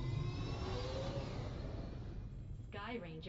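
A craft's rocket thrusters roar.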